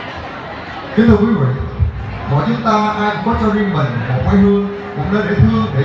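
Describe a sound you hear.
A young man speaks loudly through a microphone and loudspeakers.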